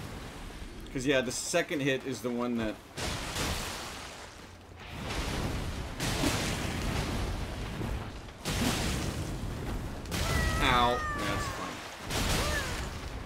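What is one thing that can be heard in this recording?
A man speaks with animation into a headset microphone.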